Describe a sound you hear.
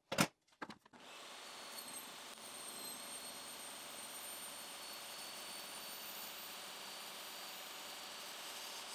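A table saw motor whirs steadily.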